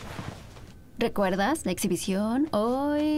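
A young woman talks calmly into a microphone.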